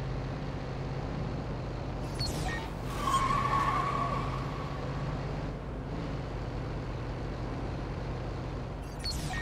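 A van engine hums steadily as it drives along a city street.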